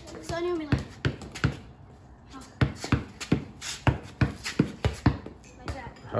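A basketball bounces on concrete in a steady rhythm.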